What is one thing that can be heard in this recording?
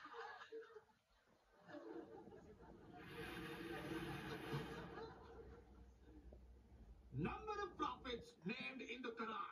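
A man speaks into a microphone, heard through a television speaker.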